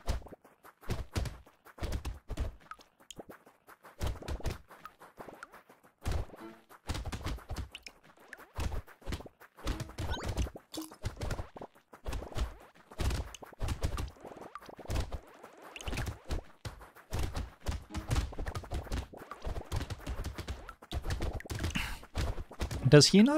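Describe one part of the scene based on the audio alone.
Rapid game weapon sounds fire and hit enemies repeatedly.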